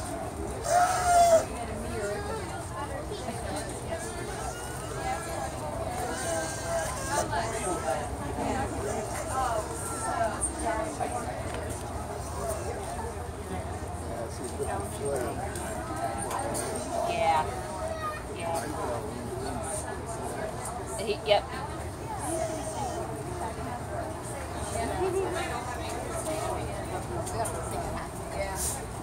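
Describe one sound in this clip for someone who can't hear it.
Many people chatter nearby outdoors.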